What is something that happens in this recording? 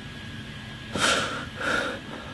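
A young man gasps sharply twice, close by.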